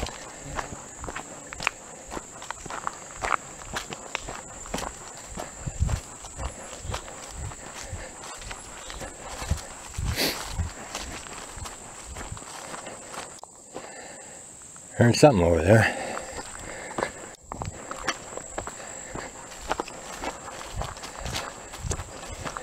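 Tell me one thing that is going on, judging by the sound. Footsteps crunch and rustle steadily through grass on a forest path.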